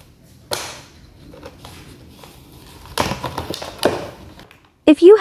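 A plastic bottle crinkles and crackles as a small dog plays with it.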